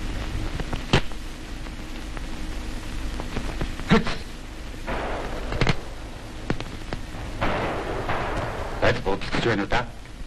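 A spoon scrapes in a metal pot.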